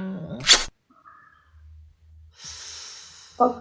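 A young man laughs over an online call.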